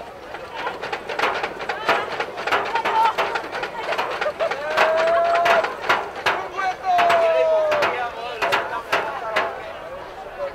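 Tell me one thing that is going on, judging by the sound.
A contraption on a cart bangs again and again as it blasts out dust.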